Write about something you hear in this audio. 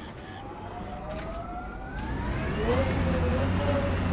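A vehicle engine revs and rises in pitch.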